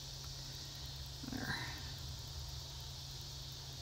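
Twine rustles softly between fingers.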